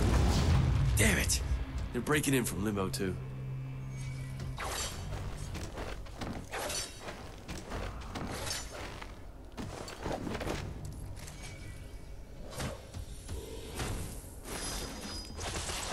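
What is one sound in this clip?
Sword blows whoosh and clash in quick bursts.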